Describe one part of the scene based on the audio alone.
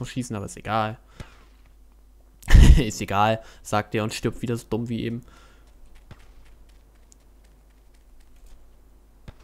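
Footsteps run quickly on hard ground.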